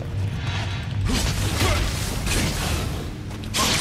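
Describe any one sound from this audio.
A burst of fire roars.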